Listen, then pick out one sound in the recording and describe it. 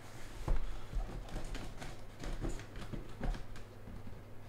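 A cardboard box scrapes and thuds as hands handle it.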